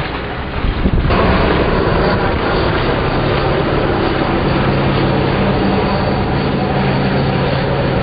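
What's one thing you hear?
A hydrofoil boat roars past across the water.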